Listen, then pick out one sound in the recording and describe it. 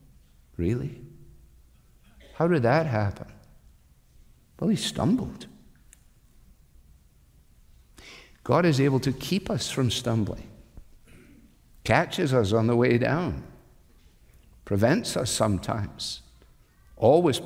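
An older man speaks with emphasis in short bursts through a microphone.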